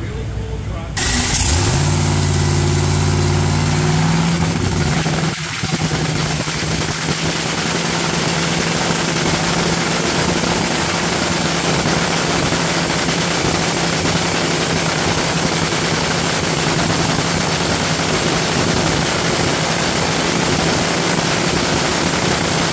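A drag racing engine starts up and roars loudly at a rumbling idle.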